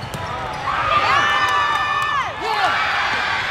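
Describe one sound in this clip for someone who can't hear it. Young women call out loudly.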